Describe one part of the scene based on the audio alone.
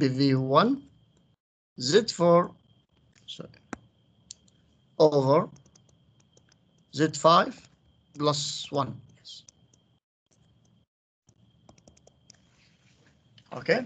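A man explains calmly in short phrases, heard through an online call.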